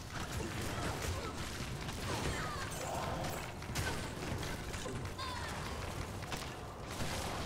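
Weapons clash and strike in quick fighting.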